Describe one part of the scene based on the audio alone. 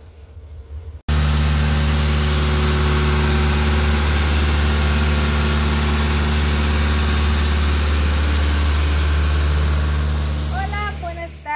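A road sweeper's engine roars loudly and steadily.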